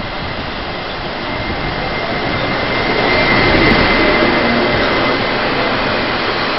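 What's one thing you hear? Train wheels screech on the rails as the train slows.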